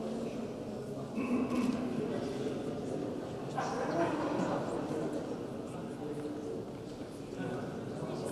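Several people talk in a murmur in the background.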